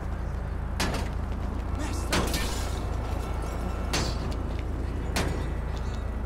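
A man's fists pound hard on a car window.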